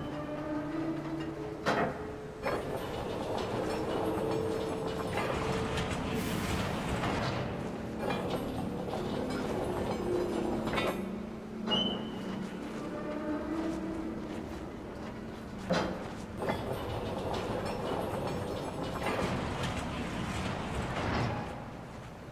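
A heavy wooden mechanism grinds and creaks as it turns.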